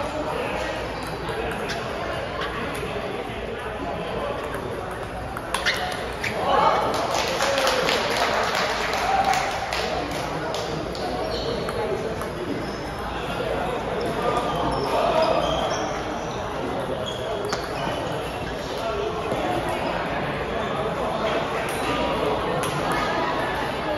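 A ping-pong ball clicks back and forth off paddles and a table in a large echoing hall.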